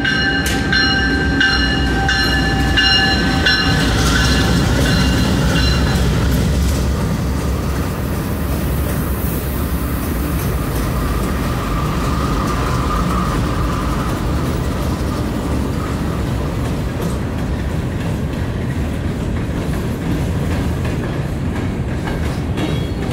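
Steel wheels clatter and squeal on rails.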